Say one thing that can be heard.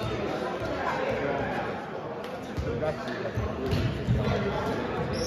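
Young men chatter and call out across the gym.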